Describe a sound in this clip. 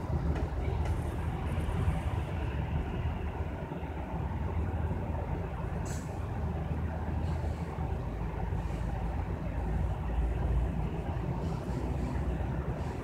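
Traffic rumbles steadily.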